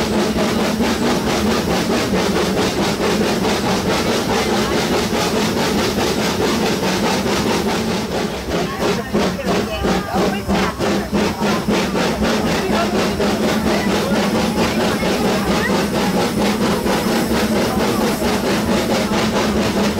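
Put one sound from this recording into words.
A steam locomotive puffs and hums close by.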